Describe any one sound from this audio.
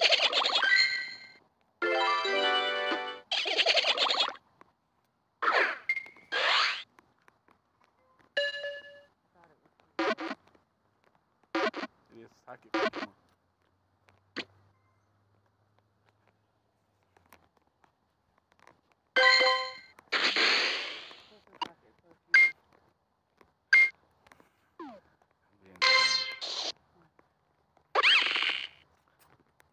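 Bright game chimes and sparkling effects play in short bursts.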